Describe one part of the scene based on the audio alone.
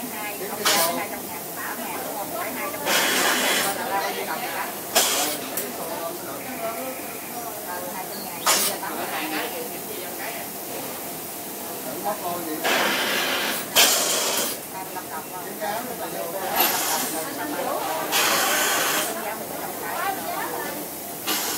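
Machines hum steadily in a busy workroom.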